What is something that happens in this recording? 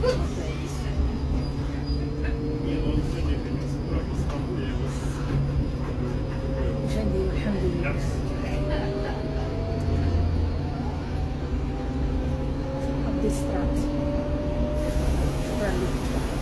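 A bus engine rumbles and whines steadily as it drives.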